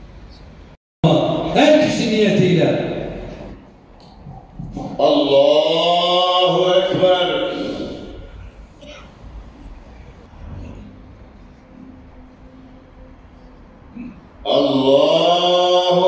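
A man chants a prayer loudly through a loudspeaker, outdoors.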